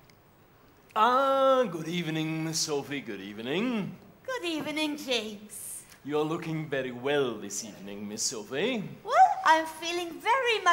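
A man sings with feeling in a large hall.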